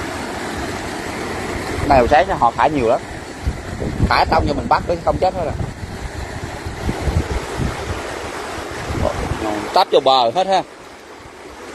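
Water rushes and churns loudly nearby.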